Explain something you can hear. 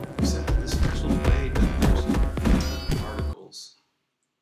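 Electronic game music plays loudly with zapping effects, then cuts off.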